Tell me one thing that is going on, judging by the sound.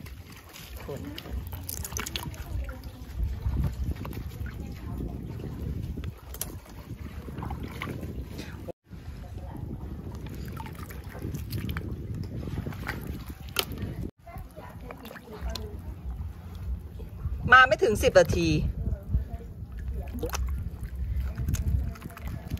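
A gloved hand splashes and swishes through shallow water.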